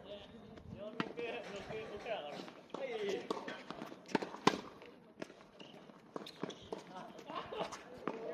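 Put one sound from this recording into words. A tennis ball is struck sharply by a racket, now and then.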